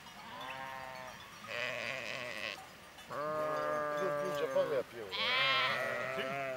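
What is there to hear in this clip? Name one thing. A flock of sheep bleats loudly close by.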